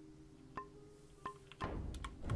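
Interface clicks chime softly.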